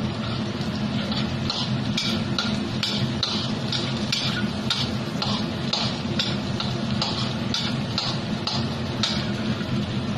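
A metal spatula scrapes rhythmically against a wok.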